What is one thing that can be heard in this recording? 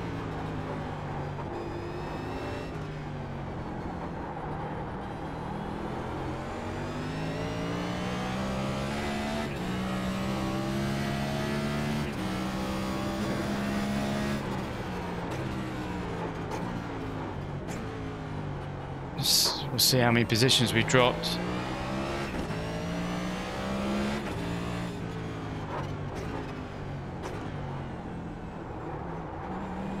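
A race car engine roars, rising in pitch and dropping sharply with each gear change.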